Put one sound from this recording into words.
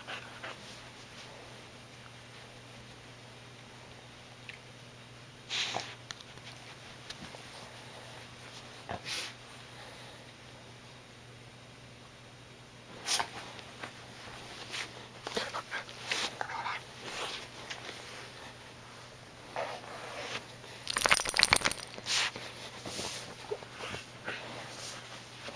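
A hand rubs and ruffles a dog's thick fur close by.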